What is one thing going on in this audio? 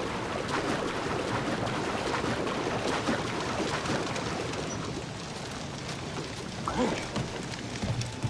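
Fire crackles on a burning ship.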